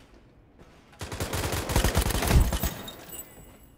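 A rifle fires a rapid burst of shots nearby.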